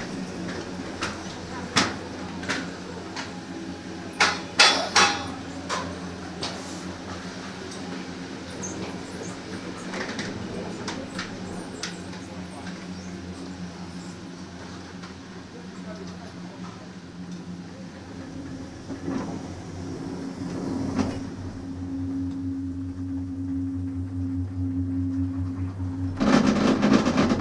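Chairlift machinery hums steadily.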